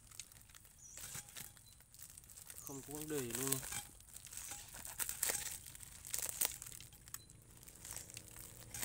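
Stiff dry roots knock and scrape together.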